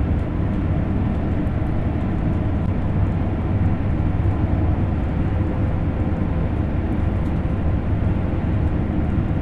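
A high-speed electric train rumbles at speed over rails, heard from inside the cab.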